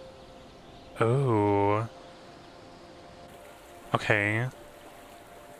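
A man speaks with animation into a close microphone.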